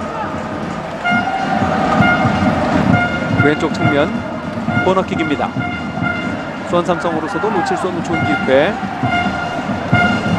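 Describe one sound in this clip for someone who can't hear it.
A crowd in a stadium murmurs and chants in the distance.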